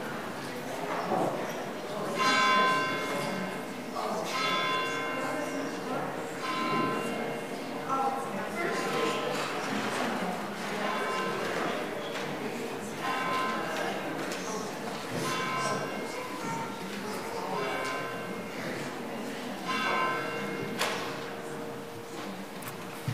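A piano plays slow, ringing notes in an echoing hall.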